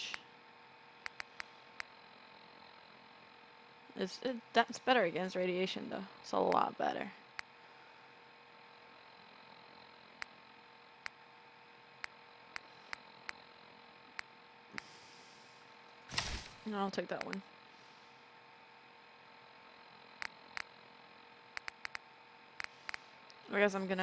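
Short soft clicks tick now and then as a menu is scrolled.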